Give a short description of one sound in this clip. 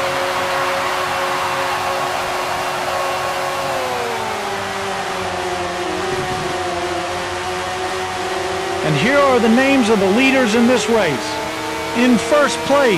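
A racing car engine whines steadily at high speed, then drops in pitch as the car slows.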